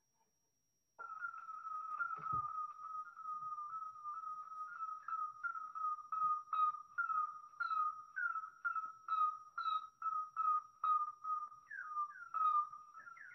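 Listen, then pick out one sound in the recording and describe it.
Slowed-down bat calls chirp in a quick, even series.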